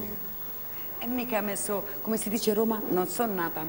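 A woman speaks lively into a microphone.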